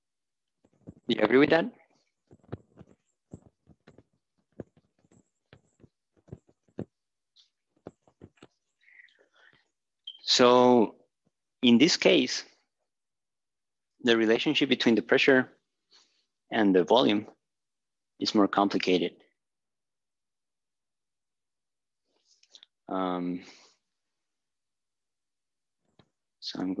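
A man speaks in bursts, lecturing with short pauses.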